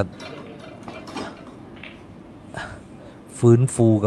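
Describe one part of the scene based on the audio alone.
Snooker balls knock together with a sharp click.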